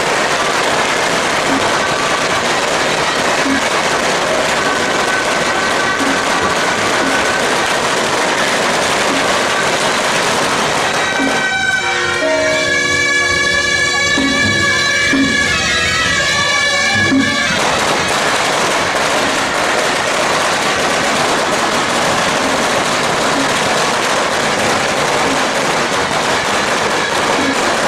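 Reed horns play a loud, shrill tune close by.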